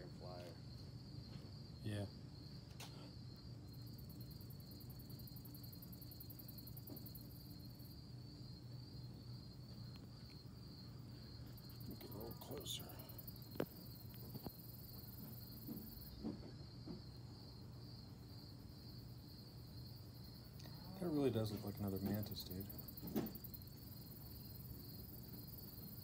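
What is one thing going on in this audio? A praying mantis chews on its prey with faint crunching.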